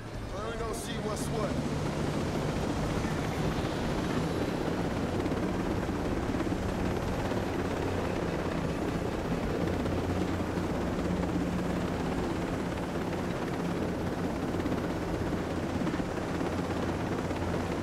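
A helicopter's turbine engine whines.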